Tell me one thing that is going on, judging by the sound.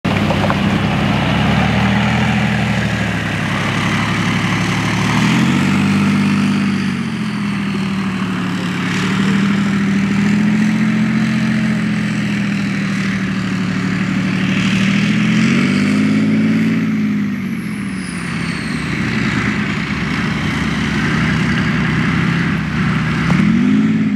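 A heavy tank engine roars close by, rising and falling as it revs.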